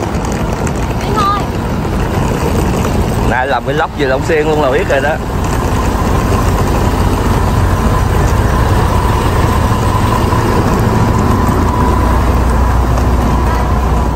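Suitcase wheels roll and rattle over pavement.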